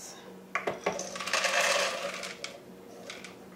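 Dry grains pour and rustle into a bowl.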